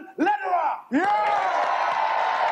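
A man shouts with excitement.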